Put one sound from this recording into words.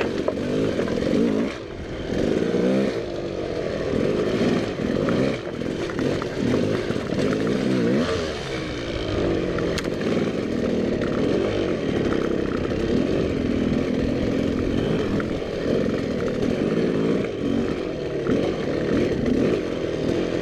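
A dirt bike engine revs and sputters up close, rising and falling in pitch.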